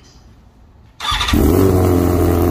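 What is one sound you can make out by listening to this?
An inline-four superbike with a full race exhaust starts up.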